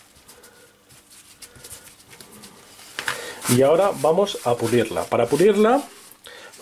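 Paper towel rustles and crinkles as it is rubbed.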